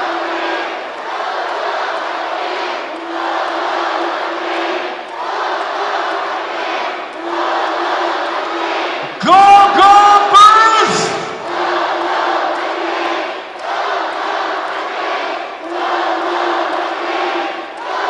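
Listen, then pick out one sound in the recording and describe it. A large crowd chants rhythmically in a big echoing arena.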